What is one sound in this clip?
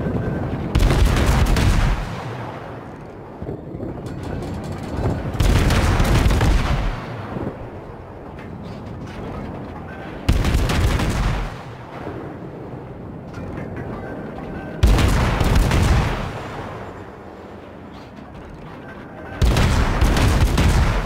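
Heavy naval guns fire in loud, booming salvos every few seconds.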